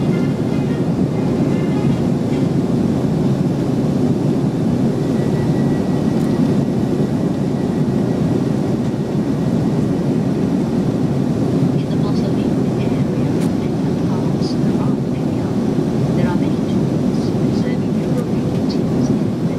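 Jet engines roar steadily inside an airliner cabin in flight.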